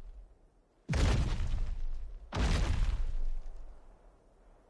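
A large creature roars loudly twice.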